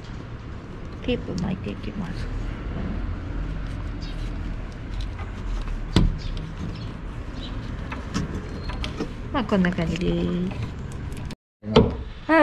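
Plastic wiring connectors click and rattle under hands.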